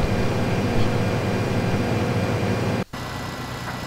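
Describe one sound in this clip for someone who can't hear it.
A combine harvester engine drones.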